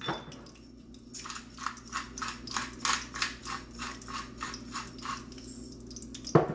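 A pepper mill grinds in quick rhythmic crunches.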